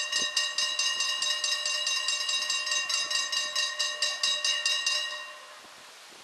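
A level crossing bell rings rapidly and loudly, then stops.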